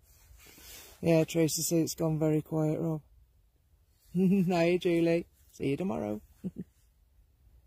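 A woman speaks slowly and calmly, close by.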